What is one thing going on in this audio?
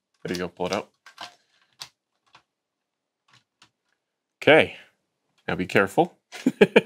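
Hands handle a small plastic device with light taps and clicks.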